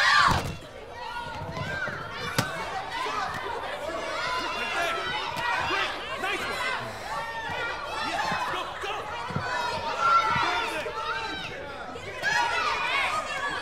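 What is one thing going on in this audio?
A group of young women cheer and chatter excitedly.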